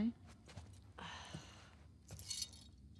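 A young woman sighs.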